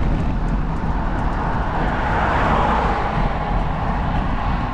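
A car approaches along the road and passes close by.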